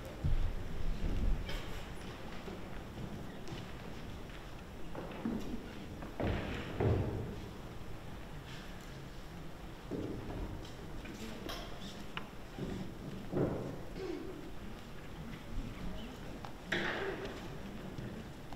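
An orchestra plays in a large echoing hall.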